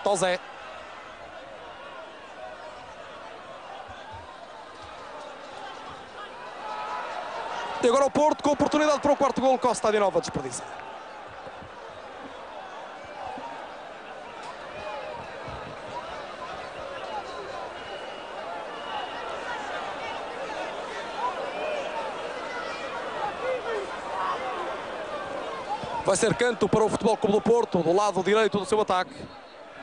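A large crowd roars and cheers in an open stadium.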